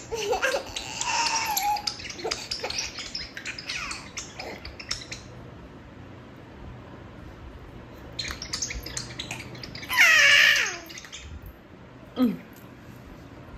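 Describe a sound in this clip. A toddler babbles and squeals excitedly close by.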